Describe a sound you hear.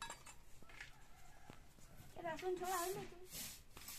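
A straw broom sweeps across a stone floor with brushing strokes.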